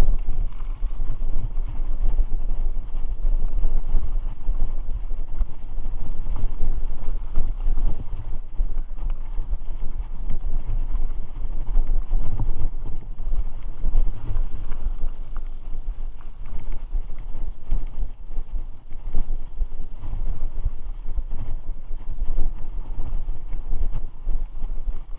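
Tall grass brushes and swishes against a moving bicycle.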